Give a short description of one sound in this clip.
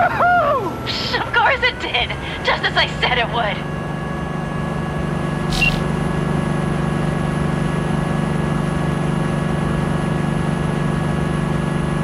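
A vehicle engine drones steadily while driving.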